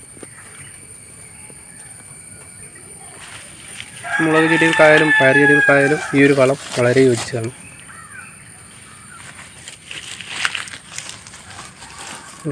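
Leaves rustle softly as a hand brushes through plants.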